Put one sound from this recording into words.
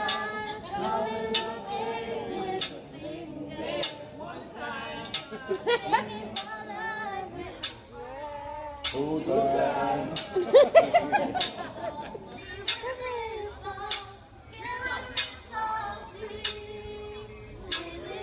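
Metal spatulas clack on a griddle in a steady beat.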